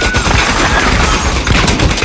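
Glass bottles shatter.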